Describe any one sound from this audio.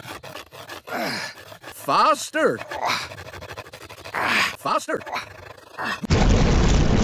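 A man talks with animation, his voice rising and falling.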